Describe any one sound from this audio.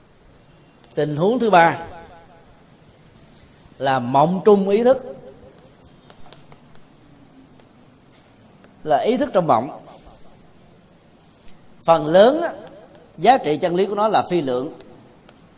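A man speaks in short phrases in a room, close by.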